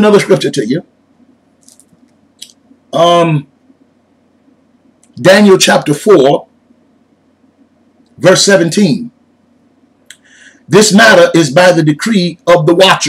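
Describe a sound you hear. A man speaks with animation in short bursts, close to a microphone.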